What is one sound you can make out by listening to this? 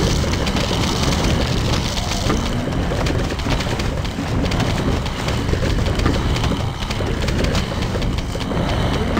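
Game peas pop and splat rapidly against advancing zombies.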